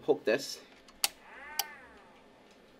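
A screwdriver clicks and taps against a metal device.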